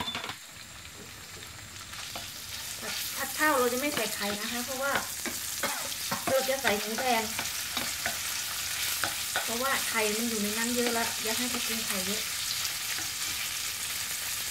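Meat sizzles in hot oil in a frying pan.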